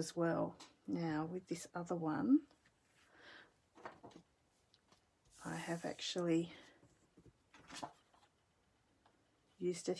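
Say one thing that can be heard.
Paper cards slide and tap on a tabletop.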